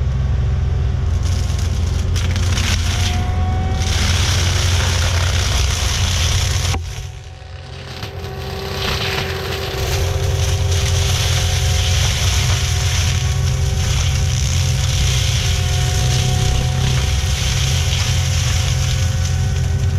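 A tracked loader's diesel engine roars loudly nearby.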